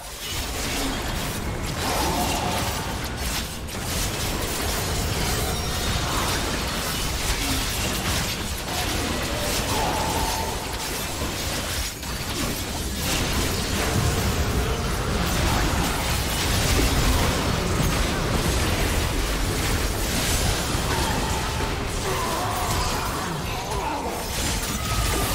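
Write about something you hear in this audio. Spell effects and weapon hits crackle and clash in a busy game fight.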